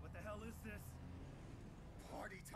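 A young man speaks in surprise.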